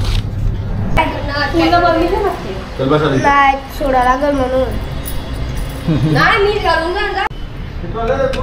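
A little girl speaks in a high, singsong voice close by.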